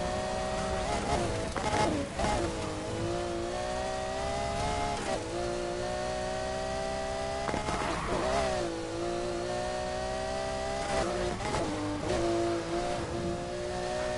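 Exhaust pops and crackles between gear shifts.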